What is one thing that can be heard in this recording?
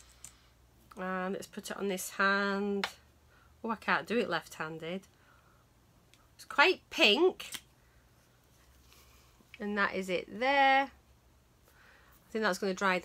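A woman talks calmly and closely into a microphone, in bursts with pauses.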